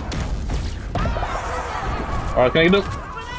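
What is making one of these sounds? Game sound effects chime and sparkle brightly.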